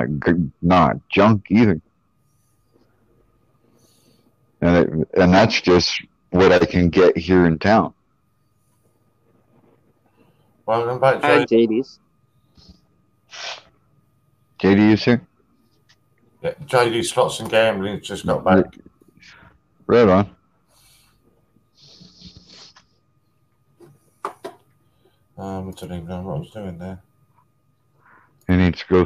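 A young man talks casually over an online call.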